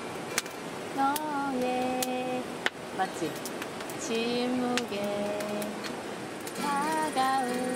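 A woman sings softly nearby.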